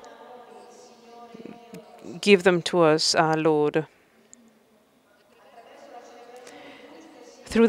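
A group of men chant slowly in a large echoing hall.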